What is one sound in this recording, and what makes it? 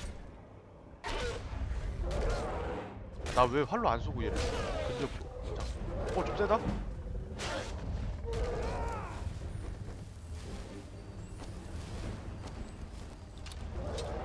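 Heavy weapon blows strike and thud.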